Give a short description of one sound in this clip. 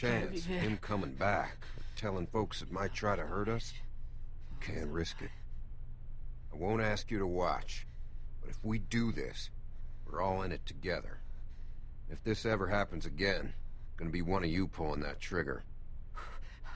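An adult man speaks firmly and gravely, close by.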